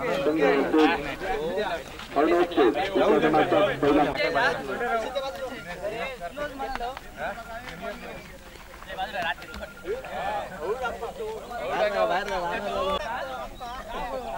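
Several men talk and chatter nearby outdoors.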